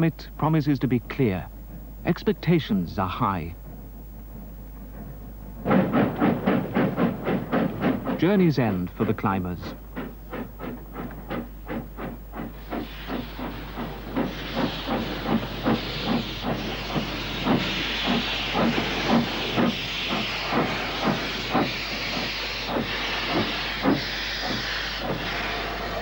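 A steam locomotive chuffs with a steady rhythm.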